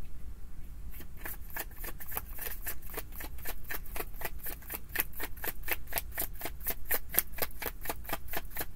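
A deck of cards is shuffled with quick, rapid flutters.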